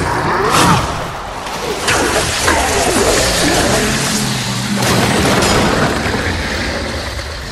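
Sword blows clash and crash loudly in a fight.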